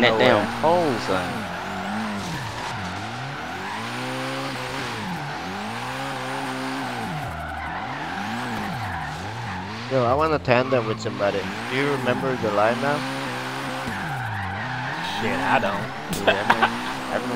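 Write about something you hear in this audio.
Tyres squeal steadily as a car drifts.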